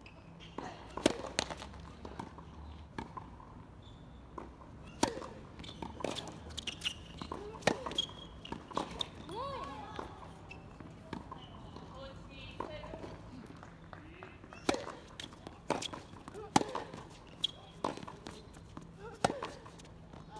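A tennis ball is struck with a sharp pop, back and forth in a rally.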